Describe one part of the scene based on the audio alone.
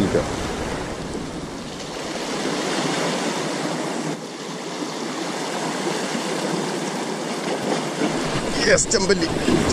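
Waves splash against rocks close by.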